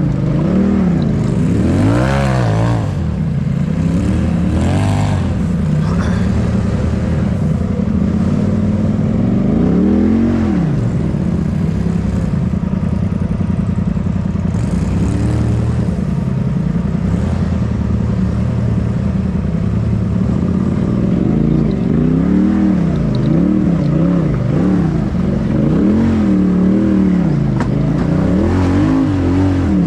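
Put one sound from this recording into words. An off-road vehicle's engine rumbles and revs up and down while crawling over rocks.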